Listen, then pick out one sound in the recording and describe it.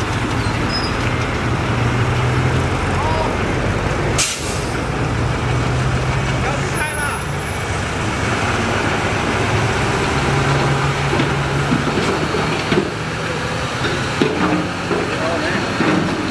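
A bulldozer blade scrapes and crunches through rocky soil.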